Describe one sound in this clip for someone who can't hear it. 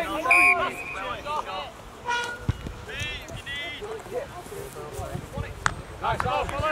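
Young men shout to each other outdoors across an open field.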